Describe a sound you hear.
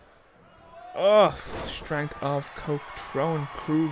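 A wrestler's body slams hard onto the ring mat with a heavy thud.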